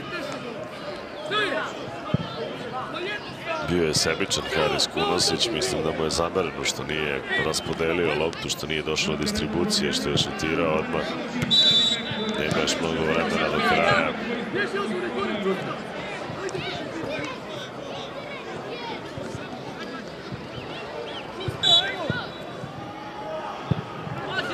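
Young boys shout and call to each other outdoors on an open pitch.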